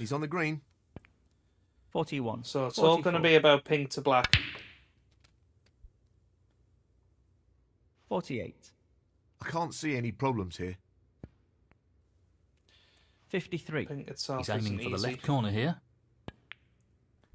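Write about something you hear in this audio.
A cue tip strikes a snooker ball with a short click.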